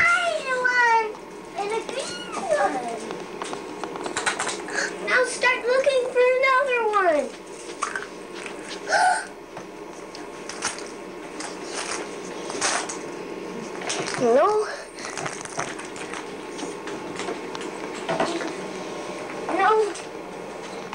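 A young girl squeals and talks excitedly close by.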